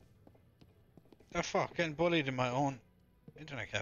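Footsteps thud softly on wooden stairs.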